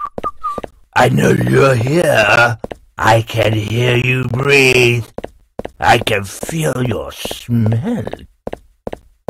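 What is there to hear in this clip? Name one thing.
A man talks loudly and with animation, close to a microphone.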